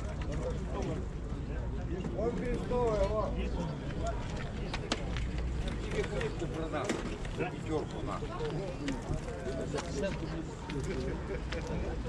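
Pigeons coo softly nearby.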